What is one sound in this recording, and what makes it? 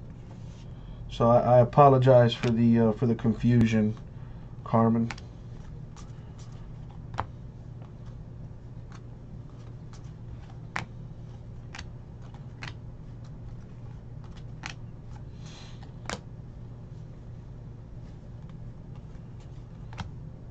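Trading cards click and snap as hands flip through them.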